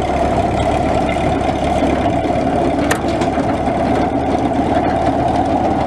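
A mower deck rattles as it is raised.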